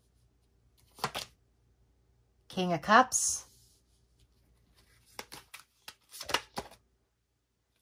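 Playing cards rustle and tap as they are handled and laid down.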